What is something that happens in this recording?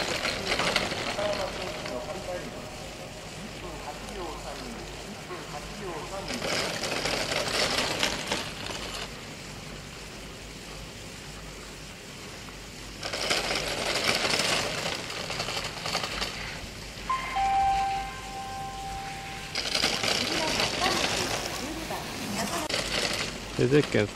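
Skis carve and scrape across hard snow in bursts.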